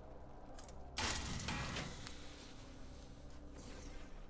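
A magic portal opens with a loud whoosh.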